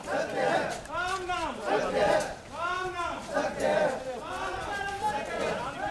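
A crowd of men chants and shouts loudly in unison close by.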